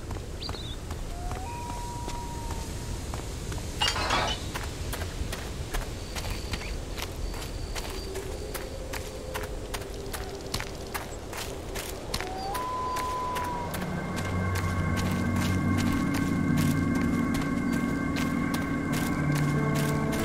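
Footsteps tread steadily on stone and grass.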